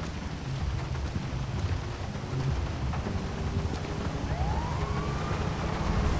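A truck door opens and shuts.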